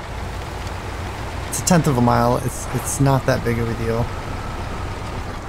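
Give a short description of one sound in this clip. A heavy truck engine rumbles steadily at low speed.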